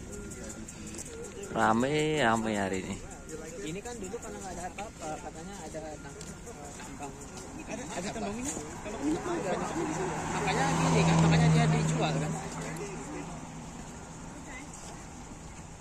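A crowd of men and women chat outdoors nearby.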